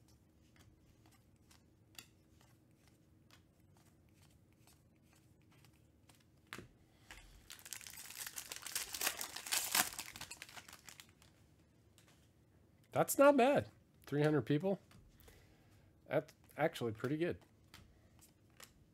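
Trading cards flick and tap softly as they are shuffled by hand.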